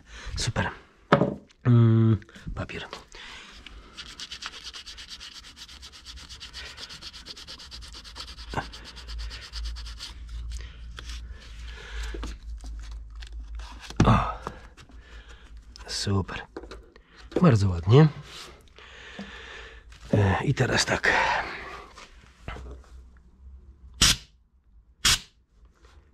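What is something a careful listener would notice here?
Gloved hands rub and press tape, with soft rustles and knocks close by.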